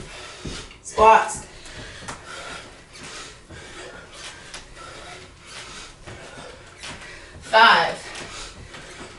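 A woman grunts loudly with effort.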